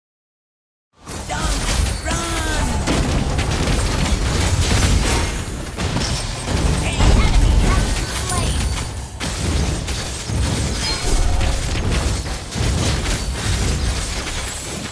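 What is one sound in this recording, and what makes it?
Video game spell and sword effects crackle and clash loudly.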